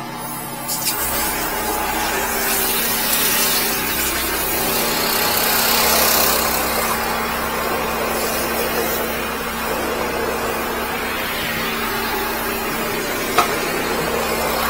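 A high-pressure water jet sprays and hisses into a drain.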